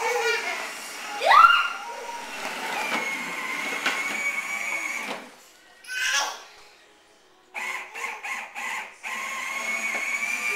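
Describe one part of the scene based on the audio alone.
A toy ride-on car whirs along.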